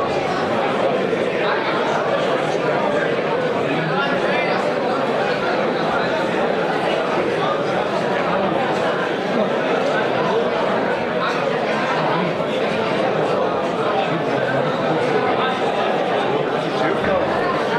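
A crowd of people chatters steadily in a large echoing hall.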